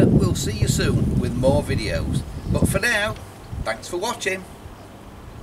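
An elderly man talks calmly, close by.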